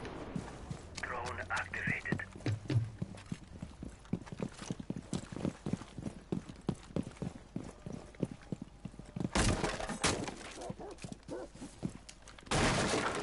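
Quick footsteps thud on a hard floor.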